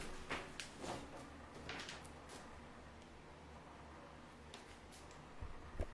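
Clothing rustles and shuffles close by as a man moves about.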